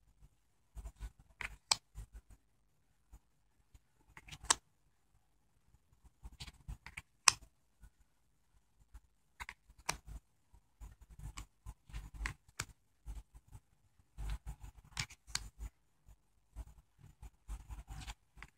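Playing cards slide and slap softly onto a pile, close by.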